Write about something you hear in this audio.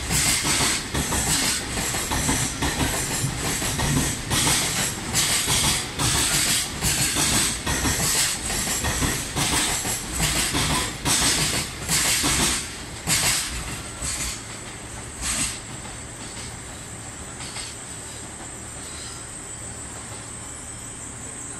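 A long freight train rumbles past close by, its wheels clattering rhythmically over rail joints.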